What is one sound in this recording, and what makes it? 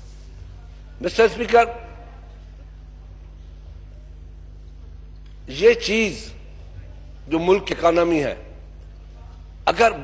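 An elderly man speaks with emphasis into a microphone, in short bursts with pauses.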